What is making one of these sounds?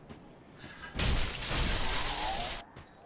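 A heavy weapon strikes with a loud crashing burst.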